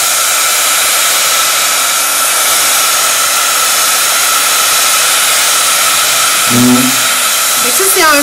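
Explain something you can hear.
A heat tool blows with a steady, loud whooshing hiss close by.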